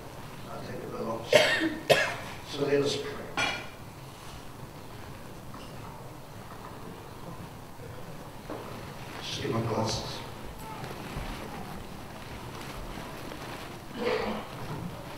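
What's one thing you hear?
An older man speaks into a microphone in short bursts, with pauses.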